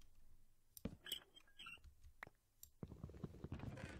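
A wooden block thuds softly into place.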